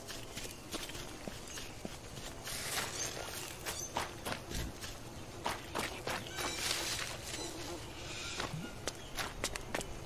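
Footsteps tread steadily over soft, leafy ground.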